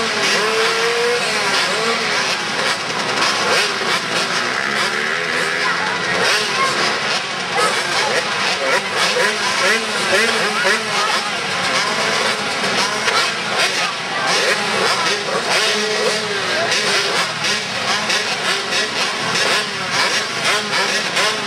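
Dirt bike engines rev and whine around a large echoing hall.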